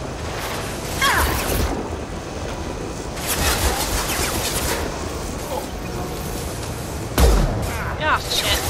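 Gunshots crack in loud bursts with a booming echo.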